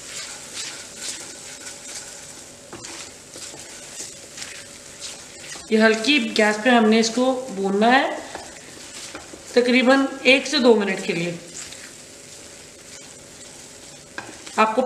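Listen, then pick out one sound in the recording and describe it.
A spatula scrapes and stirs thick sauce in a pan.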